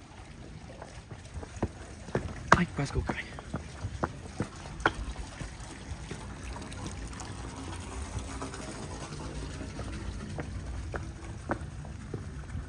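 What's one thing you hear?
Footsteps climb hard stone steps.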